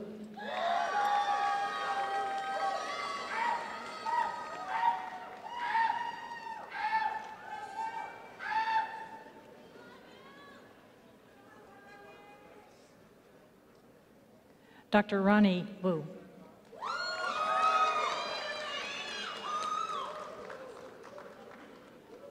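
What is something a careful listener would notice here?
A man announces through a loudspeaker in a large echoing hall.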